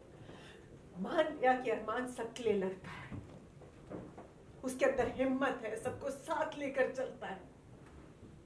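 A woman speaks firmly and with feeling, close by.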